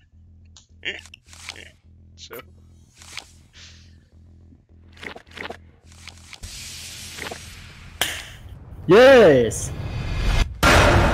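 Cards flip over with short, sharp swishes.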